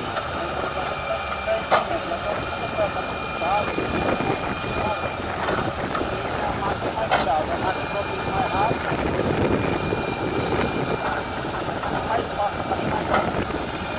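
A backhoe loader's engine rumbles steadily nearby.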